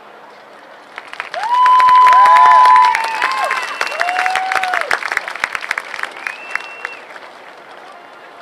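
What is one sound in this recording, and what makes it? A crowd cheers and whistles from the stands.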